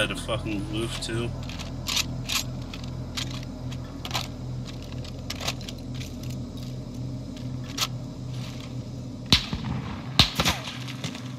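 A gun's metal parts clack and rattle as it is handled.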